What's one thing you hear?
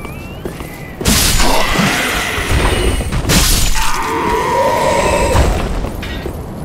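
Weapons clash and strike in a sword fight.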